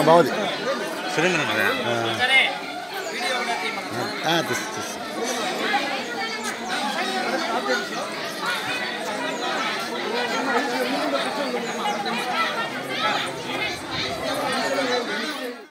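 A crowd of men and women chatter and call out nearby.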